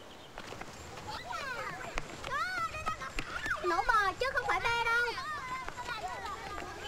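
A child shouts excitedly nearby.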